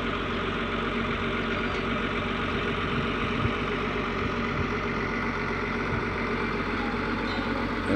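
A bus engine idles nearby with a steady low rumble.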